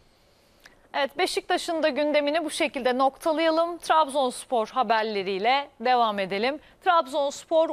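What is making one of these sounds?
A young woman speaks clearly and briskly into a microphone.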